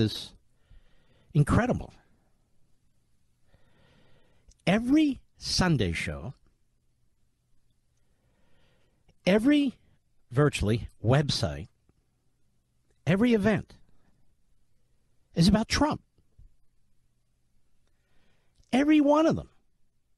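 A middle-aged man speaks forcefully into a microphone in short bursts with pauses.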